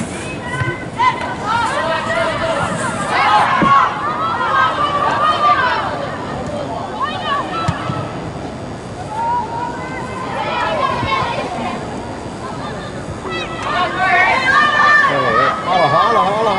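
Young women shout and call out across a large echoing hall.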